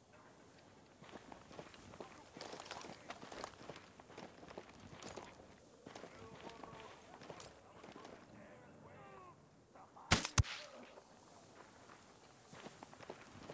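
Footsteps crunch over dry grass and gravel.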